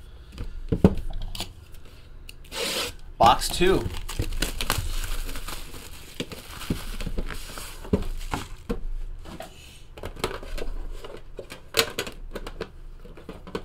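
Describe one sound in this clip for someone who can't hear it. Cardboard boxes slide and knock on a table.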